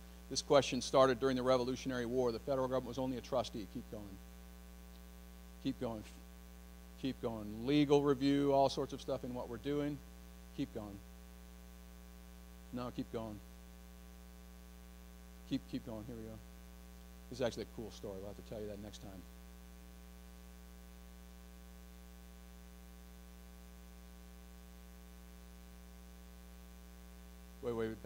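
A middle-aged man speaks into a microphone in bursts, with long pauses, heard through a loudspeaker in a room.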